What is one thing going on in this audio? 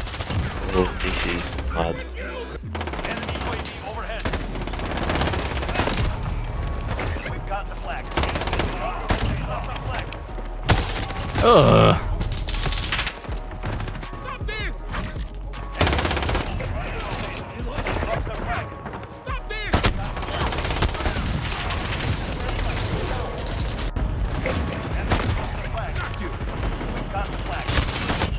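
Sniper rifle shots crack sharply.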